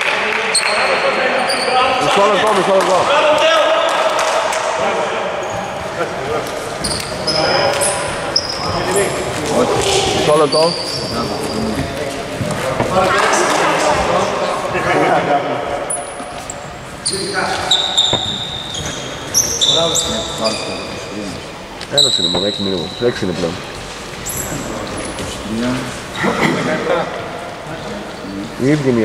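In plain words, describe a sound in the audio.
Men shout and call out to each other across the hall.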